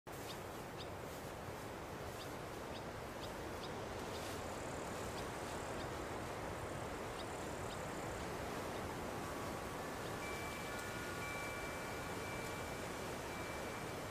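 Wind rustles through tall grass.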